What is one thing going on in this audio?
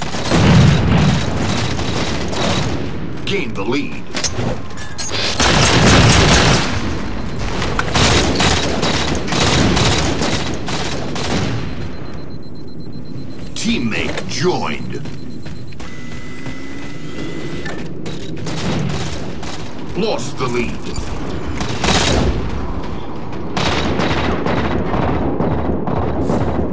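Rifle gunfire rattles in short, rapid bursts.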